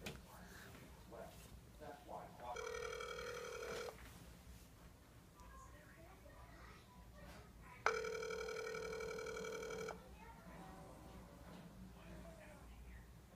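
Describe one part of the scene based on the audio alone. A young girl speaks softly into a phone close by.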